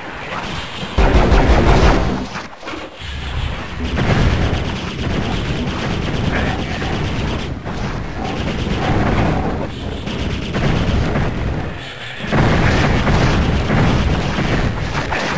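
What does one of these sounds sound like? A magic weapon fires crackling blasts in quick bursts.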